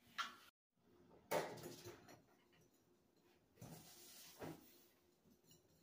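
A whisk clatters quickly in a bowl.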